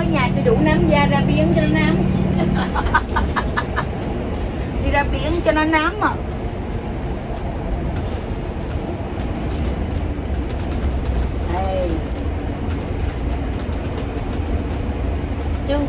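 A vehicle engine rumbles steadily with road noise.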